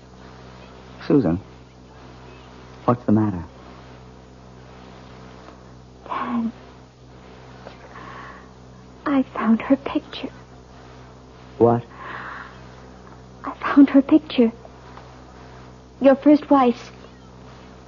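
A woman speaks quietly in short, halting phrases.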